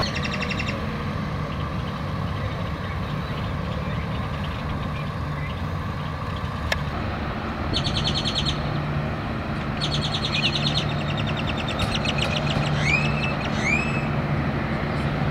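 Emergency vehicle engines idle steadily nearby.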